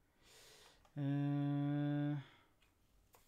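A man hums a single steady note close to a microphone.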